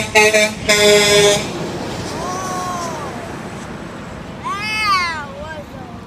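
A heavy truck rumbles past on the road.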